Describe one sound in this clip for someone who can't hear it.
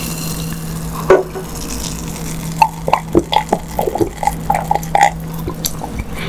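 A person gulps a drink loudly up close.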